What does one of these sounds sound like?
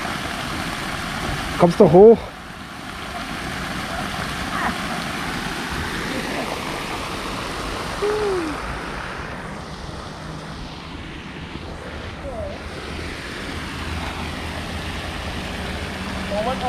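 A fountain splashes steadily outdoors.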